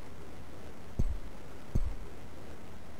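A cricket bat strikes a ball with a dull thud.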